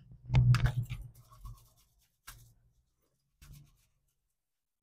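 Aluminium foil crinkles and rustles under a hand.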